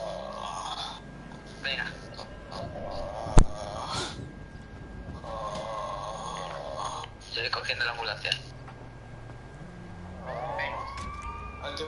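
A man speaks calmly through a microphone, heard as if over an online call.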